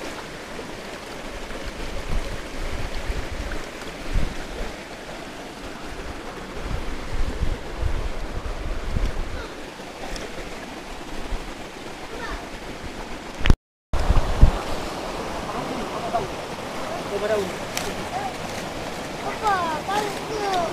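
A shallow stream gurgles and splashes over rocks nearby.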